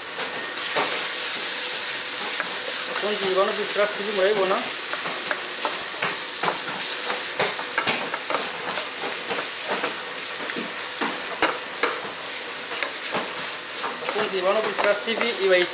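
A wooden spatula stirs and scrapes vegetables against a metal pan.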